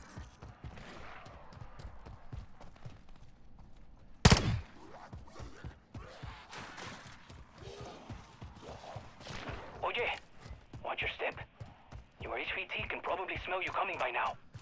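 Footsteps thud quickly across gravel.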